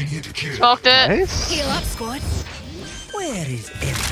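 A game spell whooshes and crackles as it is cast.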